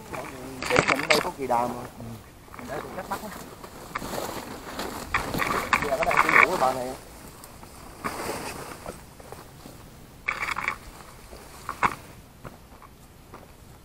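Leafy branches rustle and brush against a bag.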